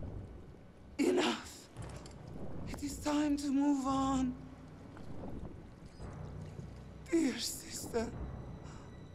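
A woman cries out sharply, close by.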